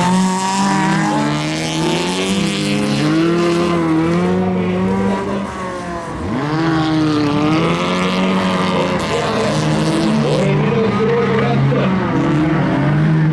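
Rally car engines roar and rev hard as the cars race past.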